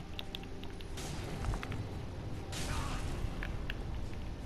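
A roaring, crackling burst of magic flares up twice.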